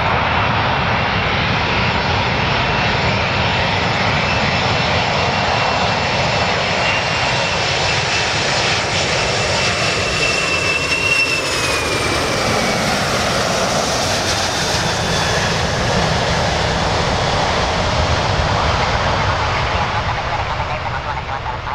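Jet engines roar loudly as a large airliner approaches overhead.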